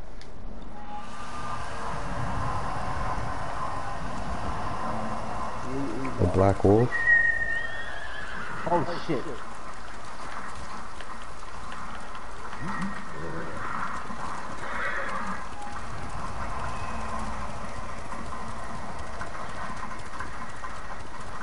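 Wind blows steadily and gusts outdoors.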